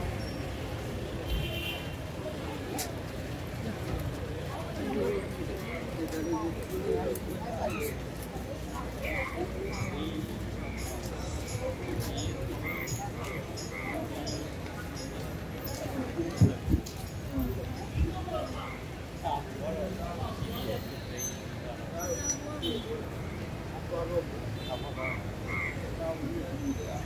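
Traffic hums steadily in the background.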